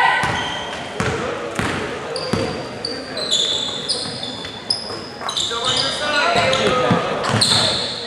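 Spectators talk and call out in the stands.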